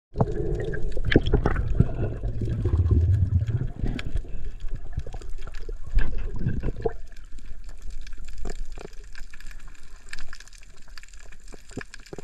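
Water rumbles and crackles with muffled clicks underwater.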